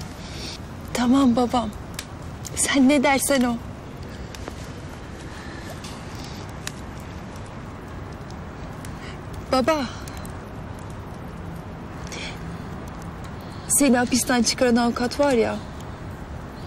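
A young woman speaks softly and with feeling close by.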